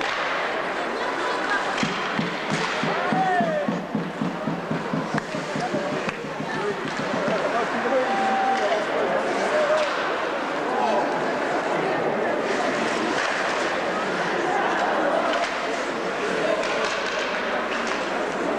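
A crowd of spectators cheers and chatters loudly in a large echoing hall.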